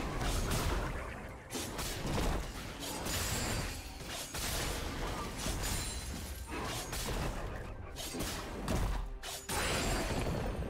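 Game characters clash with bursts of spell and hit effects.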